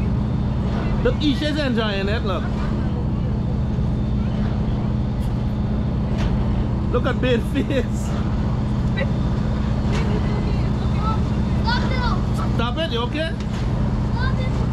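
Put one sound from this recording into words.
Children on a swinging ride scream with delight each time it swings high.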